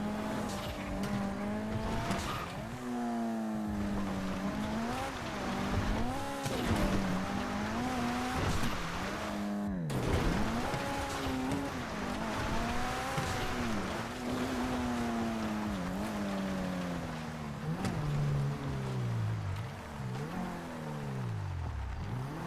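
A car engine revs and whines, rising and falling in pitch.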